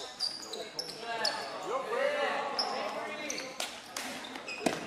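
Young women players call out to each other, echoing in a large hall.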